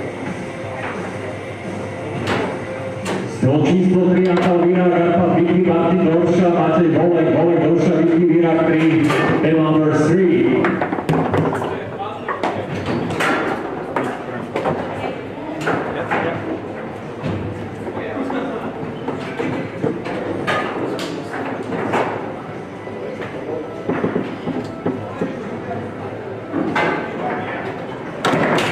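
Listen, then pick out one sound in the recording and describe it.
Foosball rods clack and rattle as players slide and spin them.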